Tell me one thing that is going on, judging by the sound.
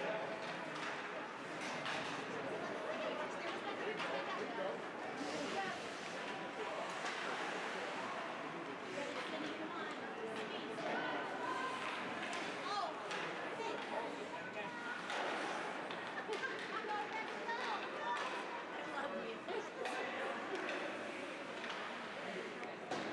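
Spectators murmur and call out nearby.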